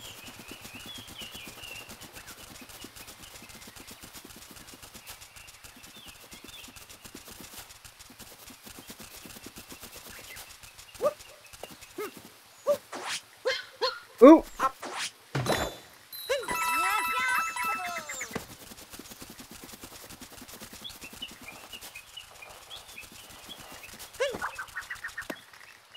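Quick light footsteps patter on grass.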